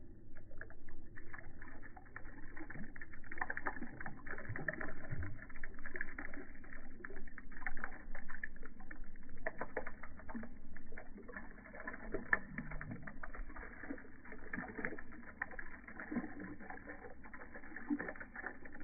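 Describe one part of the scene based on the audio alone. A stream of water splashes and patters steadily into shallow water close by.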